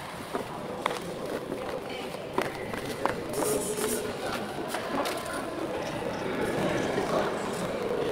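Footsteps echo faintly across a large, empty indoor hall.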